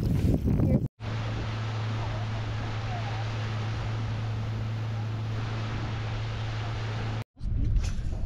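An outboard motor hums steadily.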